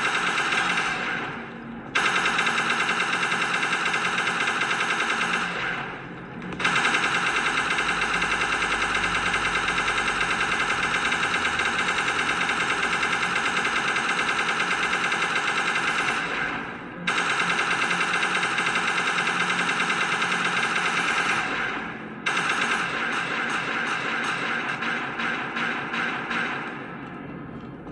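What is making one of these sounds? A game gun fires rapid bursts.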